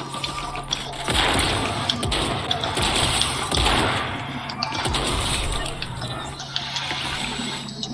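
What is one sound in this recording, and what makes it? Shotgun blasts ring out in quick bursts.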